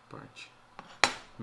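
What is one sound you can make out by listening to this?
Something is set down on a table with a knock.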